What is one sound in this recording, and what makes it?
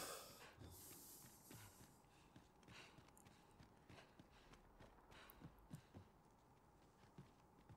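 Footsteps thud on a stone floor at a steady walking pace.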